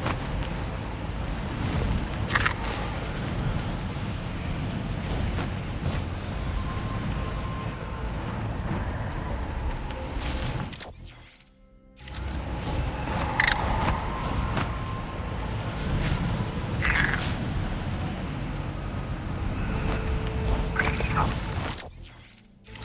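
Wind rushes steadily past as a creature flies.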